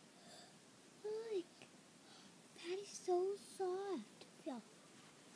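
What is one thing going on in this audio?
A young girl talks and squeals playfully close by.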